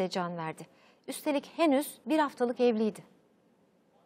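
A woman speaks clearly and calmly into a microphone, like a news presenter.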